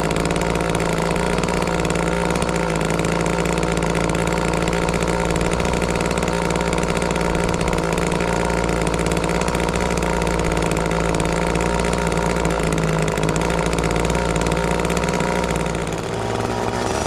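A chainsaw engine idles with a steady rumble.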